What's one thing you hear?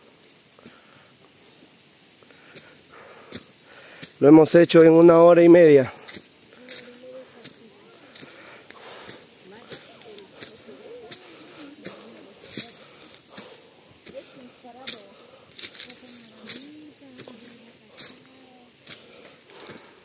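Footsteps crunch on a dry dirt path.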